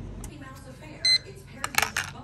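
A digital timer beeps briefly.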